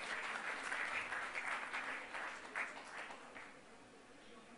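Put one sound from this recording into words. An audience applauds in a large hall and the applause fades.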